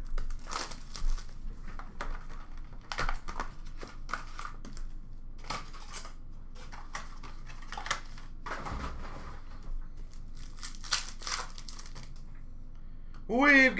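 Plastic card wrappers crinkle and rustle as hands sort through packs.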